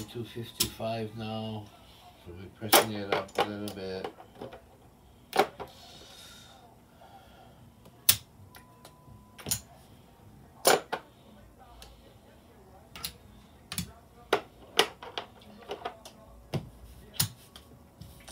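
Casino chips clack sharply as they are stacked and moved.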